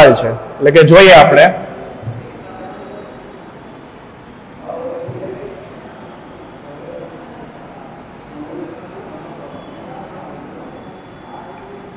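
A marker squeaks faintly on a whiteboard.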